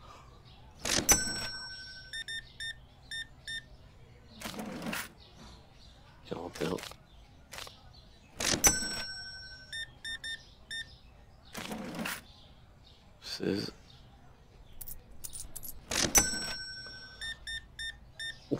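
A cash register chimes with a short electronic ring.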